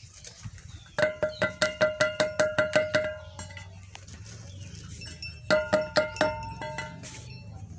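A hen cackles loudly in rapid bursts.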